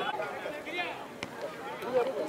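A football thuds off a player's head.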